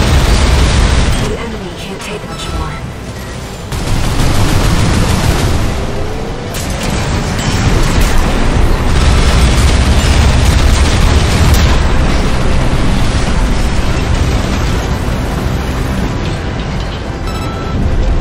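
Jet thrusters roar steadily.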